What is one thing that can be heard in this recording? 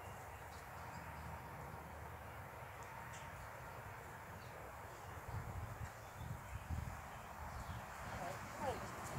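A horse's hooves thud softly on grass as it trots.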